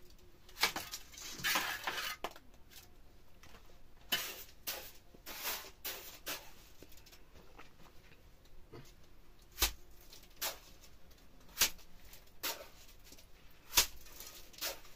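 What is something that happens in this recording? A trowel slaps wet plaster onto a brick wall again and again.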